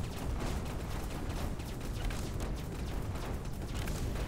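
Small explosions burst now and then.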